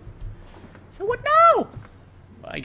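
A young man shouts loudly in fright close to a microphone.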